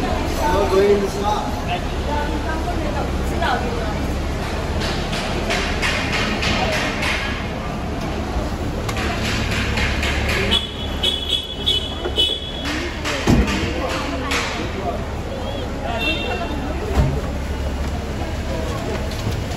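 A crowd of men and women talks and calls out nearby, echoing in a large hall.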